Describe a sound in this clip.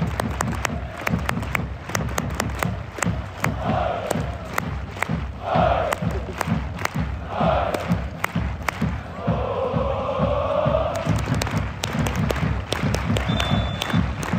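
A large stadium crowd claps in a steady rhythm.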